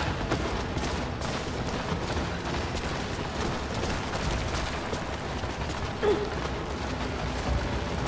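Footsteps crunch on ice.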